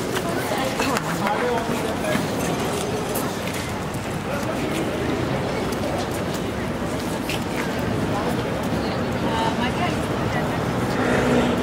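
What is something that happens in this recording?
Voices of passers-by murmur across a wide open square.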